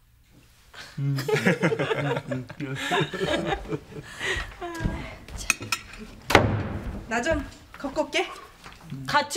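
An elderly woman talks and laughs.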